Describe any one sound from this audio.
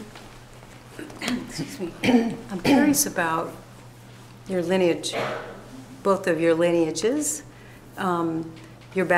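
An older woman speaks calmly nearby.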